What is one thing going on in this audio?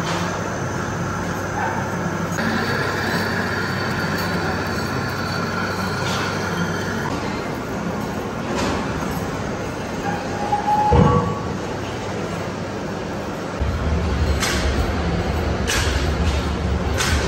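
A cutting tool scrapes and hisses against spinning metal.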